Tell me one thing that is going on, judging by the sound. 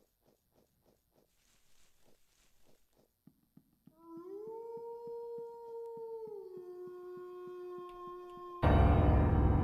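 Footsteps tap steadily on the ground and then on wooden planks.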